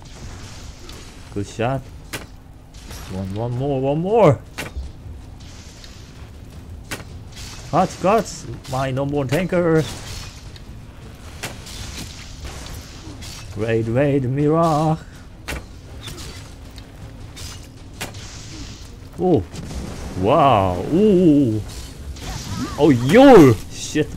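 A bowstring twangs as arrows are loosed.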